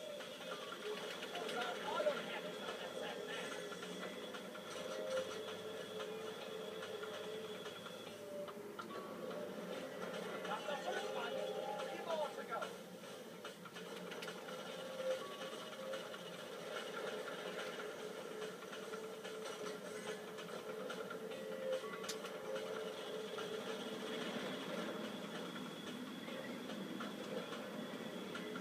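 A video game motorboat engine drones through a television speaker.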